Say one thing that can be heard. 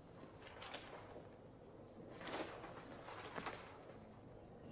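Newspaper pages rustle and crackle close by.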